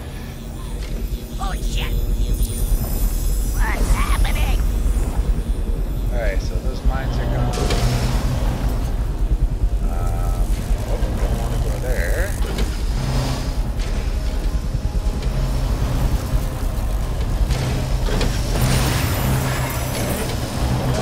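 Game sound effects whoosh and crackle.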